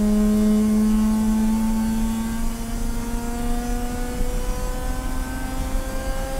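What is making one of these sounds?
A car engine drones loudly from inside the cabin, its pitch slowly rising as the car speeds up.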